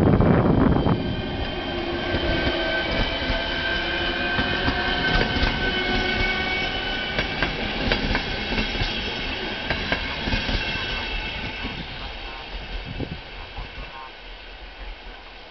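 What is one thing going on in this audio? An electric train rushes past close by and fades into the distance.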